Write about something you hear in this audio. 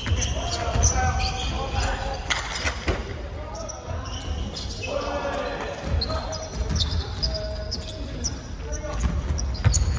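Young people call out to one another in a large echoing hall.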